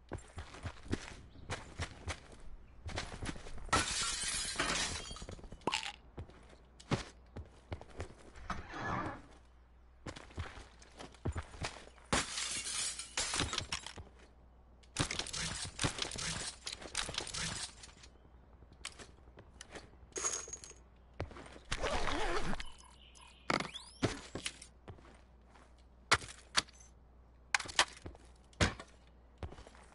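Footsteps thud quickly on grass and wooden floors.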